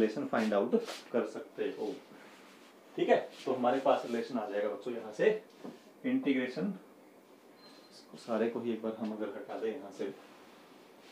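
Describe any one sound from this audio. A man speaks calmly and clearly, close by, as if teaching.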